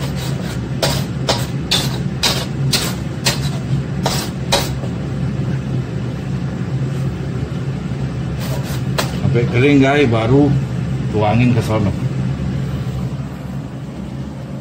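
Food sizzles in a hot pan.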